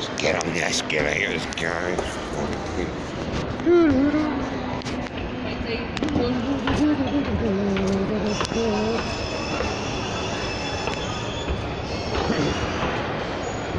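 A moving escalator hums and rattles.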